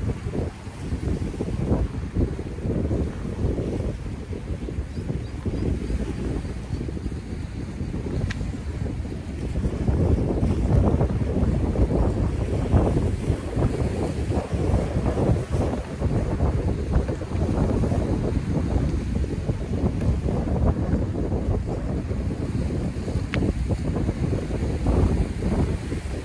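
Strong wind gusts and buffets loudly outdoors.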